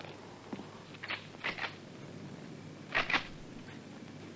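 Metal clicks as a rifle is handled.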